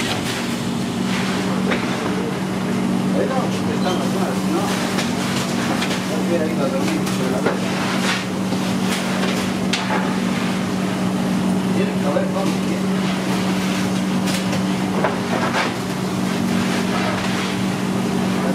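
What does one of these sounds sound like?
A metal ladle scrapes and clinks against a metal pan.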